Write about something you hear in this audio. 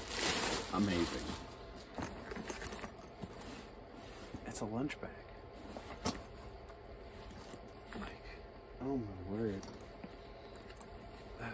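A bag's buckles and zips clink and knock.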